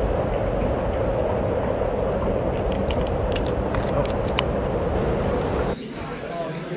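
A man talks casually, close by.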